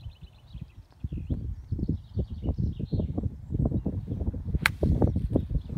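Wind gusts rumble across the microphone outdoors.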